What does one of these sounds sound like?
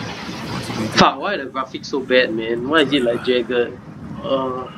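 A young man asks a question in a tired voice, close by.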